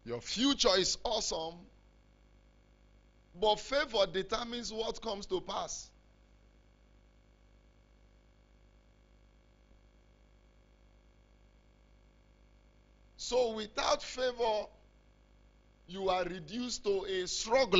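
A man preaches forcefully through a microphone, in bursts with long pauses.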